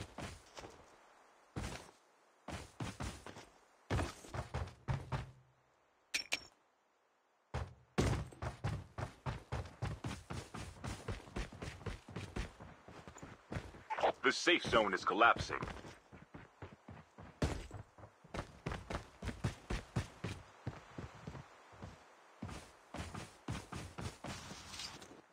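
Quick footsteps thud and crunch on the ground.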